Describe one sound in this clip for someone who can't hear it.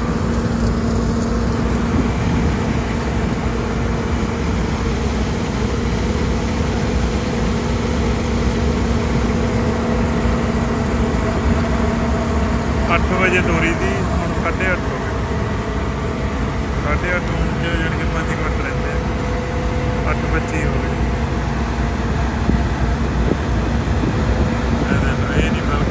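Dry straw crackles and rustles as a combine harvester cuts through it.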